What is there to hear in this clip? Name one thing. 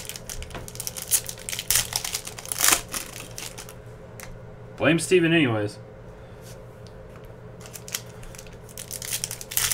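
Foil wrappers crinkle as packs are torn open.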